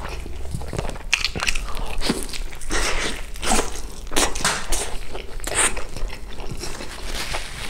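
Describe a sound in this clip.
Crispy fried chicken crunches as a man bites into it.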